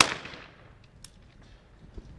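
A shotgun snaps open with a metallic click.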